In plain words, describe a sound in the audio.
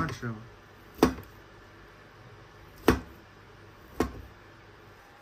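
A cleaver chops sharply through food onto a metal surface.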